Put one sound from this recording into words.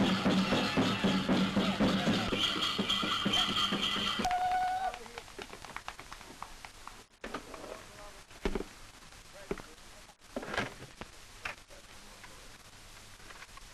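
Dancers stamp their feet on packed ground.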